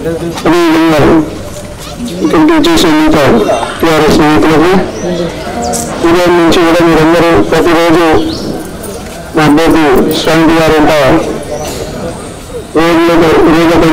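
A man shouts slogans loudly through a microphone outdoors.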